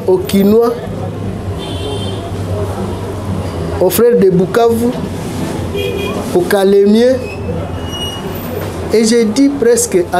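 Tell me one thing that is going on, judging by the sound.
A middle-aged man speaks calmly and closely into a microphone, in short bursts with pauses.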